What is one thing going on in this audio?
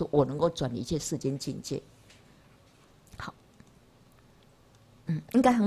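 An elderly woman lectures calmly into a microphone, pausing between phrases.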